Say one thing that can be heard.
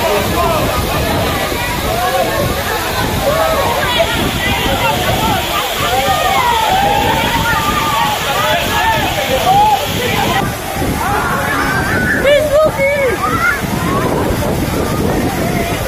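A waterfall pours and splashes onto rock.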